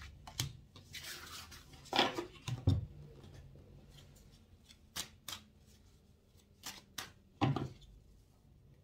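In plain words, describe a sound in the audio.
A deck of cards is gathered up and squared with a few knocks.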